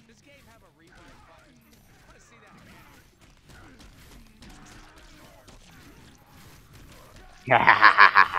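Swords clash.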